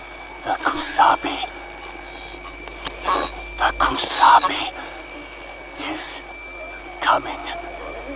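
Static crackles and hisses from an old radio.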